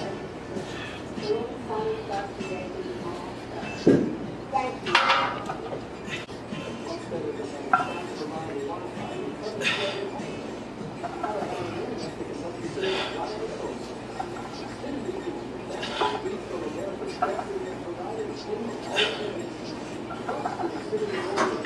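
A young man exhales sharply with each squat.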